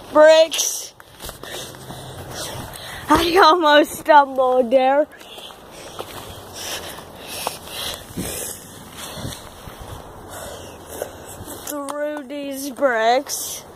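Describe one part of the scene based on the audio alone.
A boy talks loudly and excitedly, close by.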